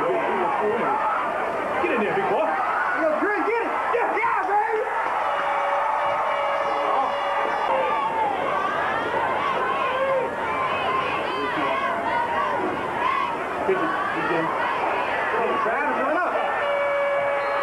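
A crowd of spectators talks and shouts.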